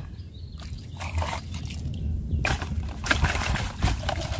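Water splashes as a toy truck is dipped and swished through it.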